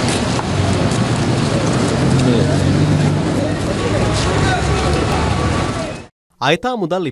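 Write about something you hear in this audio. A group of men talk over each other in a noisy outdoor crowd.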